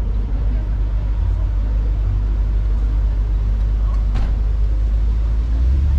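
A large luxury car's engine rumbles low as the car rolls slowly past.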